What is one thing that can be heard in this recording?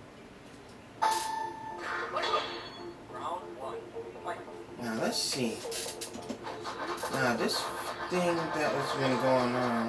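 Video game music plays loudly through a television.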